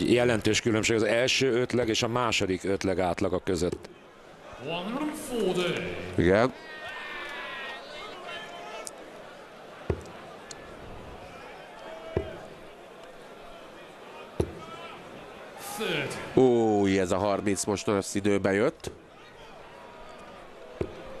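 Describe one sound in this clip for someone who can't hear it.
A large crowd murmurs in a big echoing hall.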